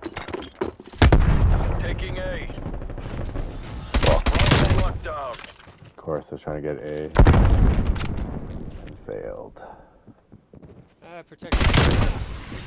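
Gunshots fire in loud rapid bursts.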